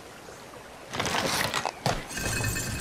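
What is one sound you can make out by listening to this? A wooden winch with gears creaks and grinds as it turns.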